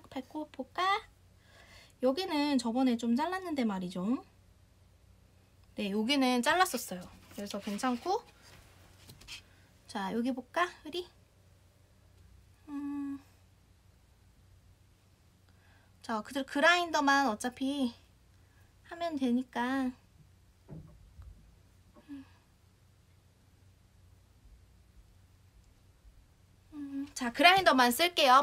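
A young woman speaks softly and playfully up close, in short bursts.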